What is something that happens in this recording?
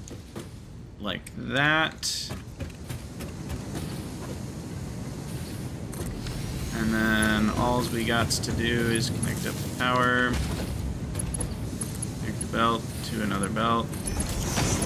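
A young man talks casually and close to a microphone.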